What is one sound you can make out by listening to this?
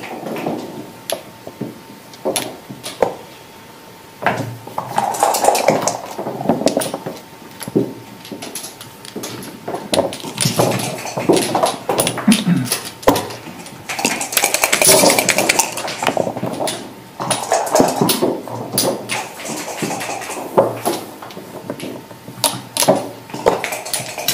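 Backgammon checkers click as they are moved on a board.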